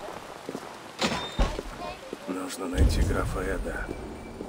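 A heavy wooden door swings open with a deep thud.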